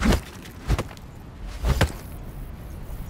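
A sword strikes stone with sharp metallic hits.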